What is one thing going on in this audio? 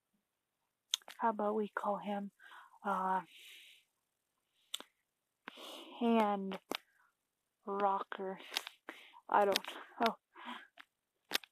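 A young child talks close to a microphone with animation.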